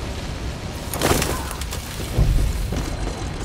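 A heavy thump sounds as a figure lands.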